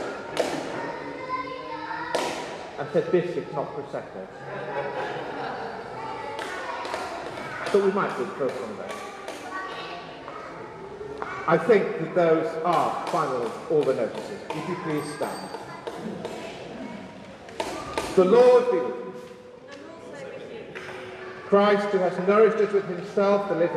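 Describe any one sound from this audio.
An older man chants aloud in a large echoing hall.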